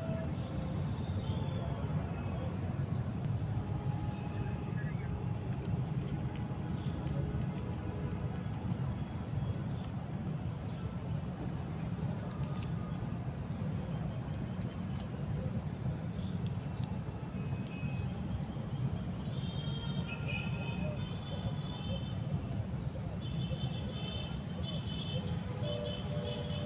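Fingers click and fumble with a small plastic device.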